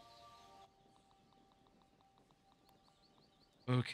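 Soft menu ticks sound as a cursor moves between items.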